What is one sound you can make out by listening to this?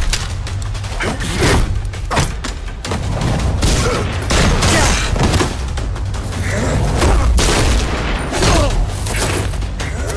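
Men scuffle and land heavy blows.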